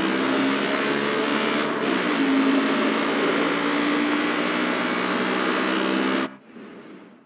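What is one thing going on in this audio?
A quad bike engine drones steadily as it drives along.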